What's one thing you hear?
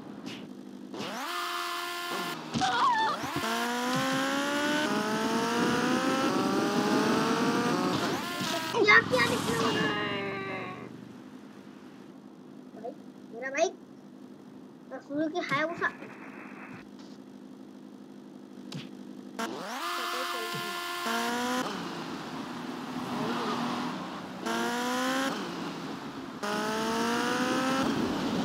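A sport motorcycle engine revs up through the gears.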